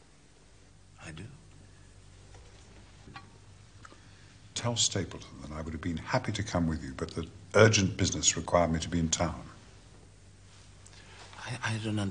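A younger man answers briefly.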